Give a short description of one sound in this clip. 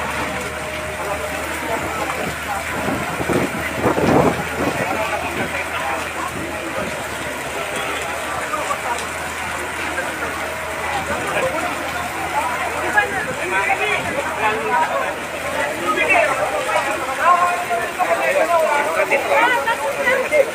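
A crowd of men talks nearby, with voices overlapping.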